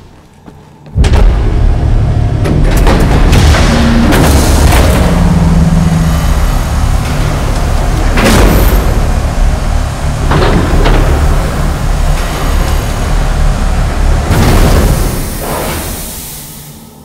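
Gas hisses loudly as it floods a sealed chamber.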